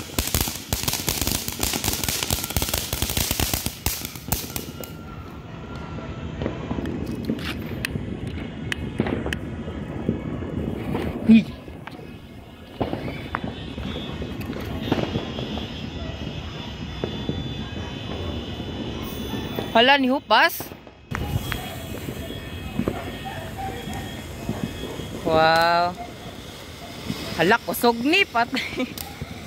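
A firework fountain hisses and crackles loudly.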